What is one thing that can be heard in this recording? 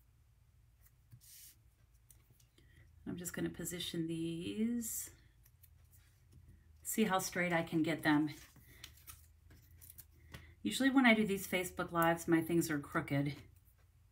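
Paper pieces rustle and tap softly on a tabletop.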